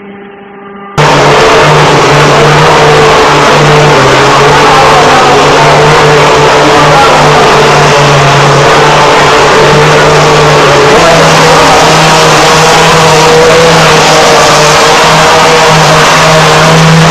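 A spray gun hisses as it sprays plaster onto a wall.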